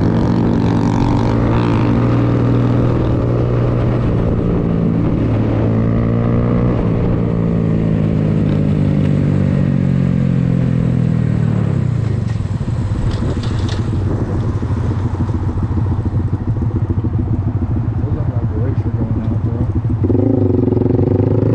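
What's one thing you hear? A motorcycle engine hums steadily up close, then slows and drops to idle.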